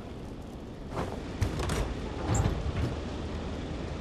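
A heavy chest lid creaks open.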